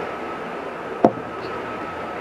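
A glass is set down on a table with a knock.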